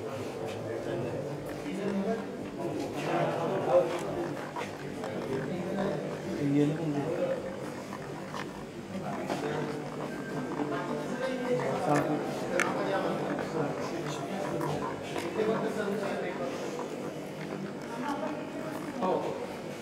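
A crowd of men and women chatter nearby in an echoing hallway.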